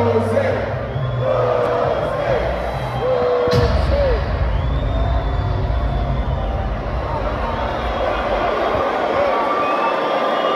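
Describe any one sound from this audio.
Loud music booms through loudspeakers.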